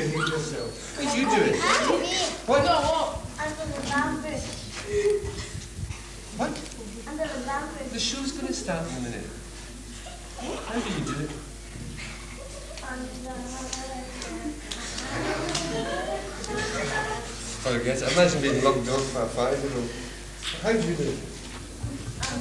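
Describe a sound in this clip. Children speak and answer in high voices.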